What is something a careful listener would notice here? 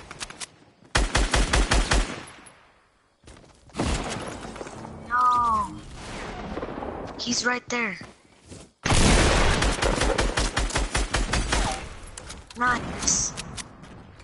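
Rapid bursts of gunfire ring out.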